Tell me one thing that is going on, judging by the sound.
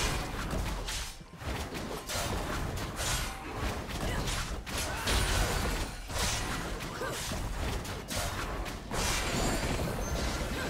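Weapon strikes and magic spells clash and burst rapidly in a fight.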